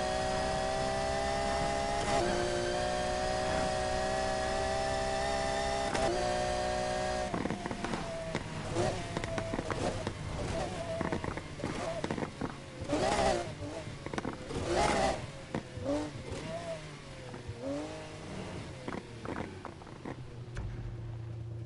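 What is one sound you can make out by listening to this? A sports car engine roars at high speed, then slows down.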